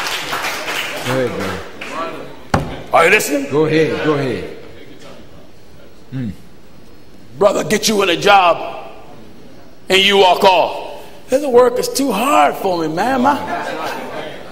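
A man preaches forcefully into a microphone in a large echoing hall, with long pauses between bursts of speech.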